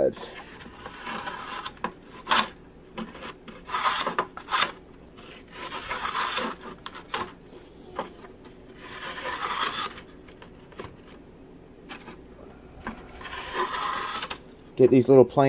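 Fine sandpaper rubs against thin wood.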